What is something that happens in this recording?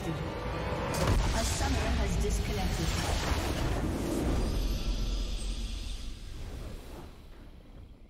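A deep boom sounds as a triumphant game fanfare swells and then fades.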